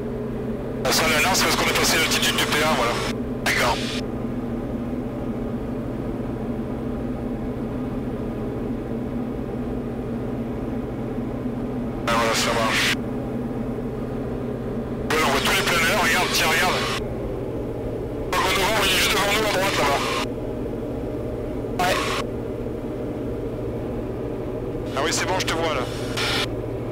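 An aircraft engine drones steadily throughout.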